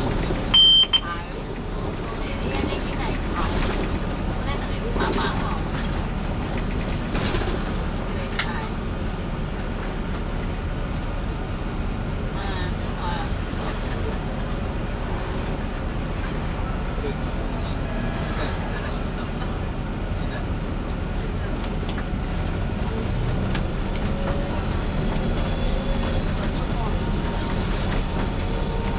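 City traffic hums and passes outside.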